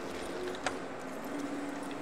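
A horse's hooves clop on stone.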